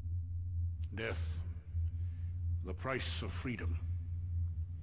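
A middle-aged man speaks sternly and slowly, close by.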